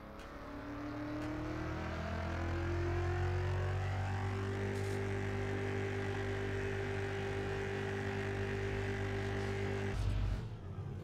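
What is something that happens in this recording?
A car engine idles and rumbles with a rising hum.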